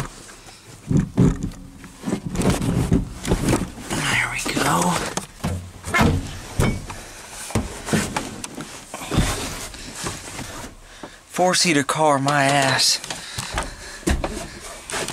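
Clothing rustles and knocks close by.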